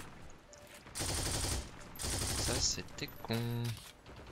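A machine gun fires a burst of rapid shots.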